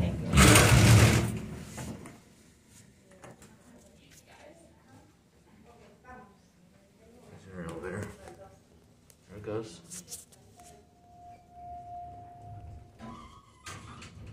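An elevator car hums and rumbles softly as it moves.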